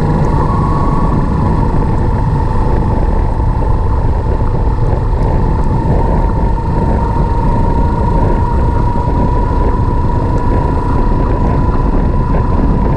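Wind roars loudly against the rider.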